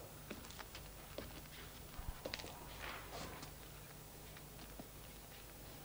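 A young woman speaks softly and slowly nearby.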